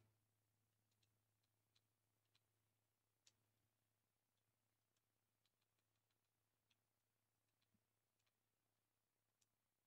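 Soft interface clicks tick now and then.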